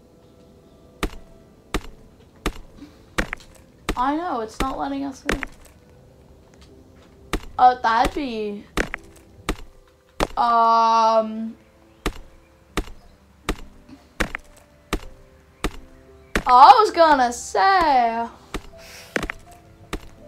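A pickaxe strikes rock repeatedly with sharp knocks.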